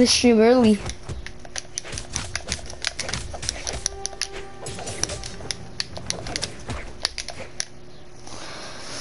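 Game sound effects of hits and clicks sound in quick succession.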